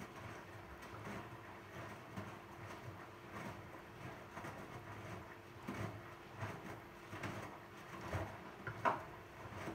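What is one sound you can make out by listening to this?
A washing machine drum turns, with laundry tumbling and thudding softly inside.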